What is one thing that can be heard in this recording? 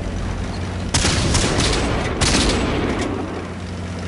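Cannon shots boom and crack.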